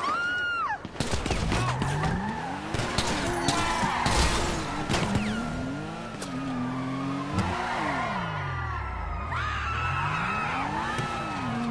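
A car engine revs up and down, rising and falling in pitch.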